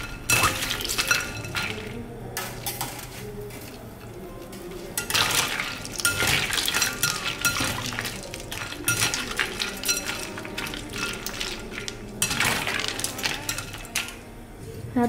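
Ice cubes clink and rattle against a glass bowl as a spoon stirs them in water.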